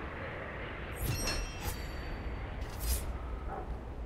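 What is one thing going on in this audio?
A bright shimmering chime rings out.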